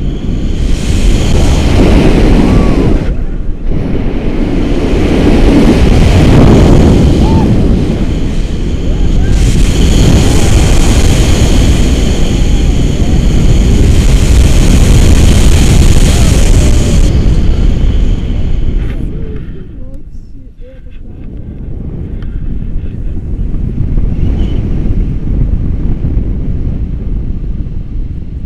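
Strong wind rushes and buffets loudly, as if outdoors high up.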